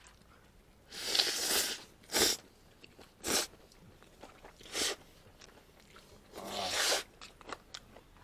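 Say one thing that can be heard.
A person slurps noodles up close.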